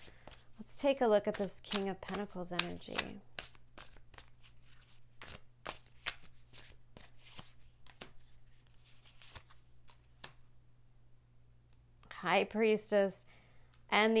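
Playing cards flick and riffle as they are shuffled by hand.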